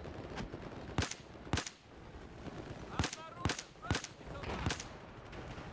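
A rifle fires single loud shots, one after another.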